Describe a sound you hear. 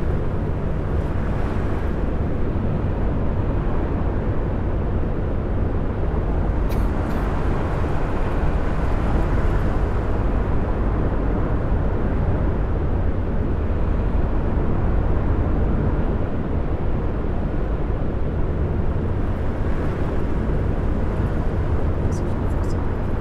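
A bus engine drones steadily while driving at speed.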